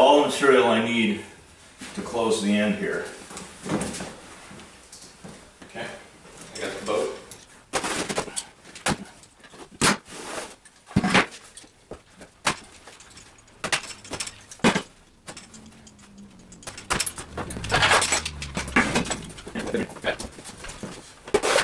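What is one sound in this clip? Stiff canvas rustles and crinkles as it is handled.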